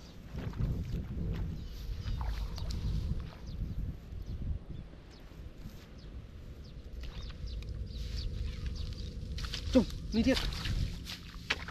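Footsteps rustle through dry straw.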